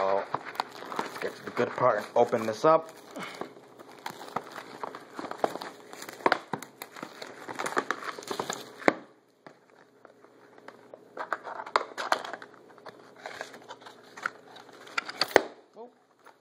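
A plastic game case taps and rattles as hands handle it.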